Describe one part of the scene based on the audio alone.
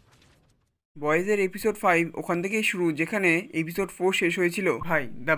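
A man speaks with animation, close by.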